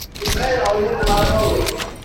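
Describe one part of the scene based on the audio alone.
A gun fires a quick shot.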